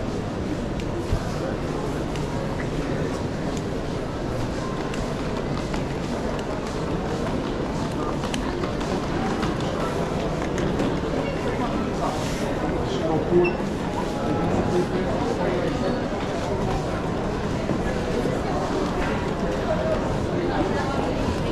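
Suitcase wheels rumble over a hard floor.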